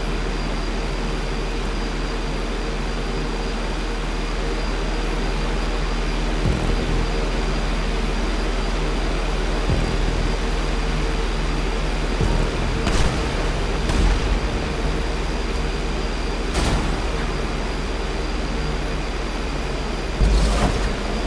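A propeller plane engine drones steadily at high speed.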